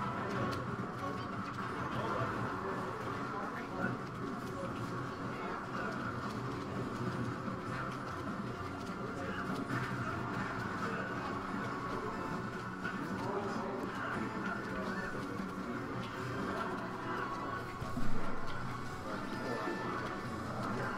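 A fighting game's hits and blasts ring out rapidly.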